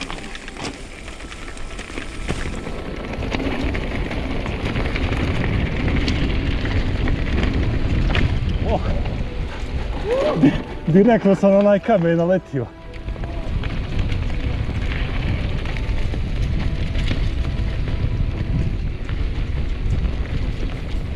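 Wind rumbles loudly past.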